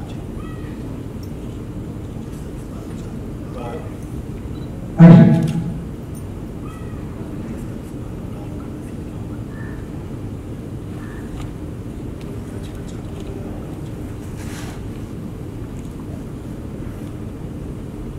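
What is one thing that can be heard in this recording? A man speaks quietly into a phone.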